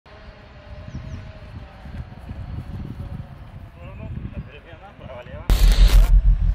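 Footsteps thud softly on grass as players jog.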